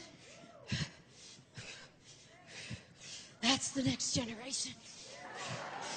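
A woman speaks with fervour into a microphone, heard through loudspeakers.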